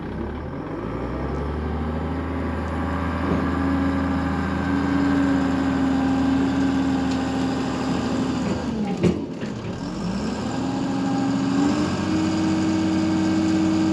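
A heavy diesel engine rumbles steadily as a dump truck drives across dirt.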